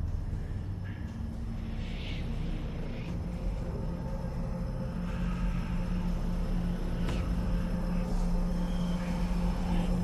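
A deep industrial hum drones steadily in a large echoing hall.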